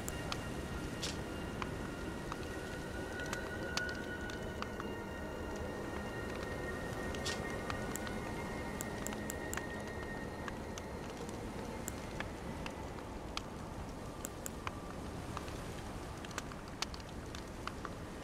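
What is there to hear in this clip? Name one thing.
Soft menu clicks tick now and then as a cursor moves between items.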